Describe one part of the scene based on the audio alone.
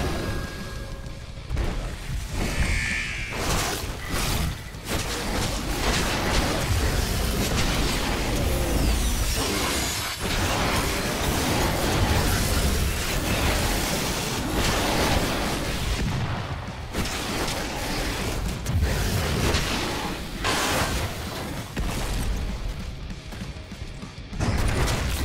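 Blows, slashes and crunching impacts land in fast, violent combat.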